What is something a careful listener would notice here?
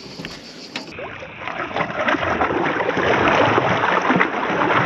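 A large fish splashes and thrashes in the water close by.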